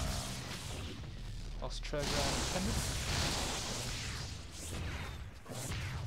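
Laser weapons zap and crackle in quick bursts.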